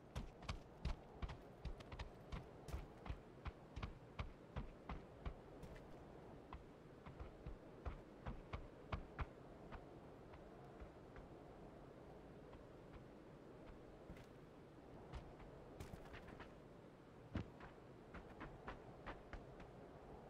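Footsteps thud quickly on hard steps.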